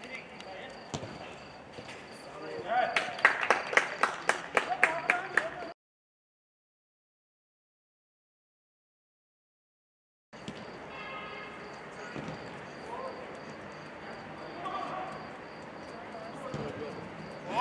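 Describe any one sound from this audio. A football is kicked with a sharp thud.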